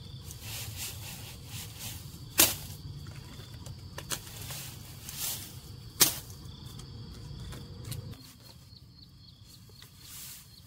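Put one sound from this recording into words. Dry lemongrass stalks rustle as hands handle them.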